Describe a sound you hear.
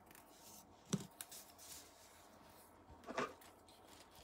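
A small metal tool taps down onto a soft mat.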